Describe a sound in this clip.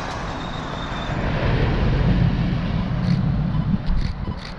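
A vehicle drives past on the road.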